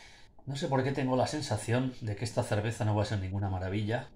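Beer pours from a can into a glass, fizzing.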